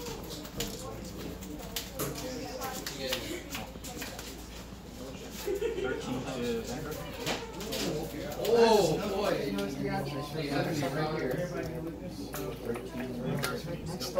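Cards riffle and shuffle in a player's hands.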